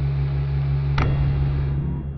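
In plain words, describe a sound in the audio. A metal nut cracks sharply and pops out under pressure.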